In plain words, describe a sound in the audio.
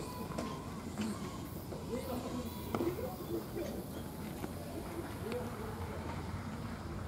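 Men call out across an open field in the distance.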